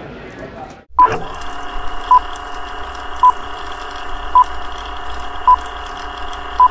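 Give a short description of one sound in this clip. A short electronic beep sounds about once a second.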